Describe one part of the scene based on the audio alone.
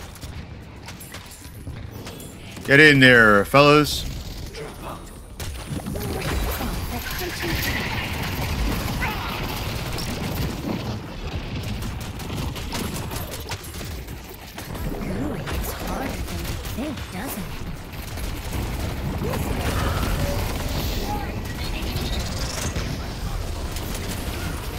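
Gunfire and blasts from a game crackle throughout.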